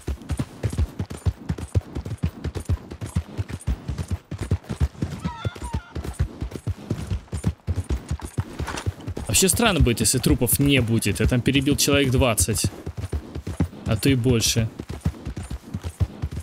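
A horse's hooves clop steadily on soft ground at a trot.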